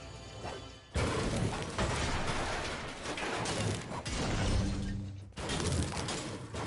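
A pickaxe strikes metal again and again with loud clangs.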